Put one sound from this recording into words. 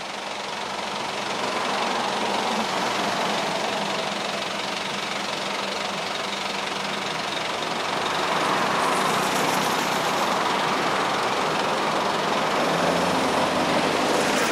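A propeller plane's engines drone loudly as it approaches and lands, growing louder.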